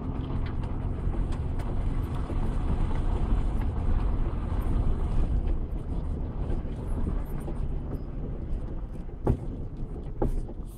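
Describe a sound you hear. Tyres crunch and bump over a rough dirt road.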